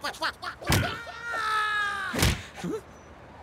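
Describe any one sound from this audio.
A cartoon creature screams loudly.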